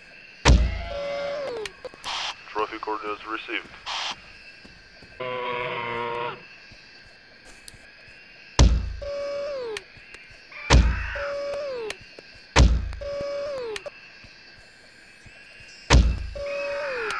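A crossbow fires with a sharp thump.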